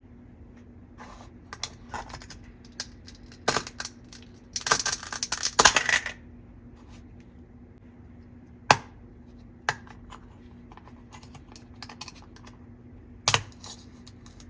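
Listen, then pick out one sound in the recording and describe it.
Toy food halves click apart and snap together.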